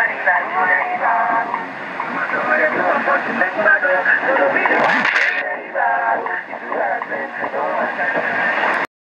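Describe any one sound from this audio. A small radio plays a voice speaking, thin and tinny through its loudspeaker.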